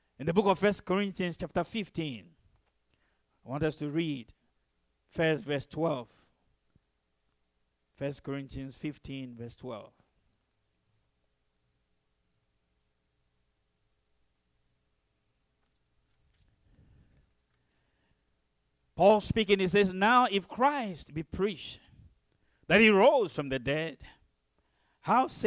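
A man speaks slowly into a microphone, with long pauses.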